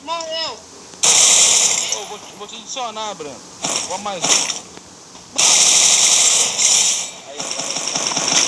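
Gunfire rings out in rapid bursts.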